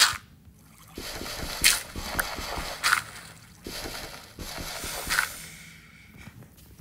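Water splashes and swishes.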